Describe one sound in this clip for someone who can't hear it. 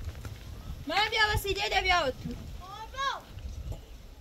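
A woman calls out in a high voice nearby.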